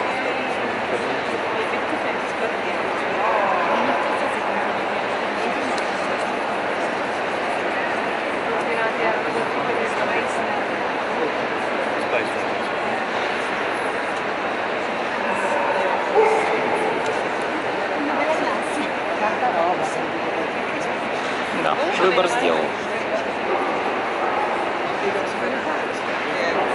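A large crowd murmurs steadily in a big echoing hall.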